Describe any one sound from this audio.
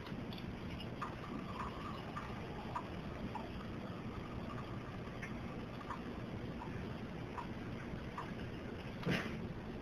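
Water pours from a dispenser into a glass.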